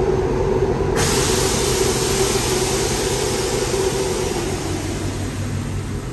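Air hisses loudly as a car's suspension lets down.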